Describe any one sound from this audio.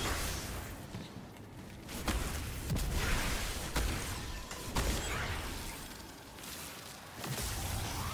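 A man speaks into a headset microphone.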